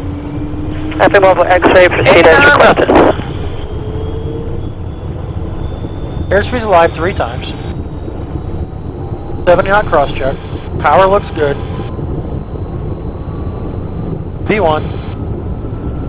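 A man calls out briefly over a headset intercom.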